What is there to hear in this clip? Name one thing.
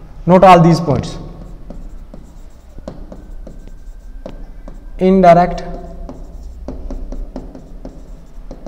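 A marker taps and squeaks against a whiteboard.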